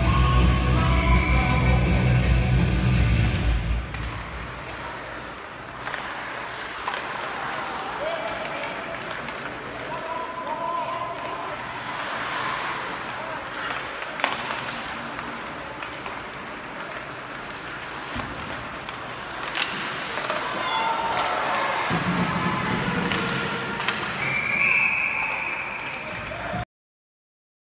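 Ice skates scrape and hiss across the ice in a large echoing arena.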